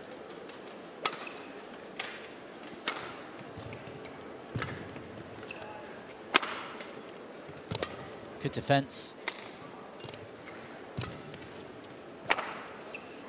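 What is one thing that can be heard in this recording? Rackets strike a shuttlecock back and forth in sharp pops inside a large echoing hall.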